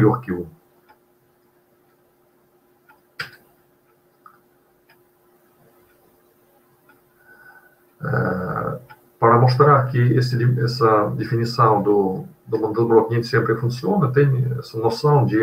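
A man lectures calmly over an online call.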